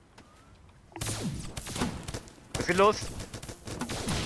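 Magic blasts burst and crackle during a fight.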